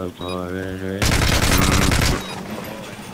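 Gunfire rattles in a quick burst.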